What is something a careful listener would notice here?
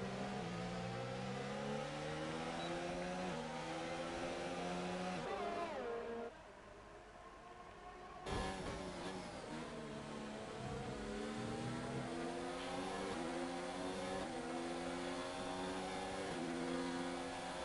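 A racing car engine screams at high revs, rising in pitch and dropping sharply with each gear change.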